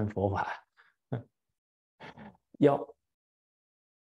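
An elderly man laughs softly.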